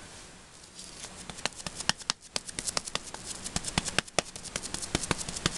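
A hard plastic block clicks and taps sharply, close by.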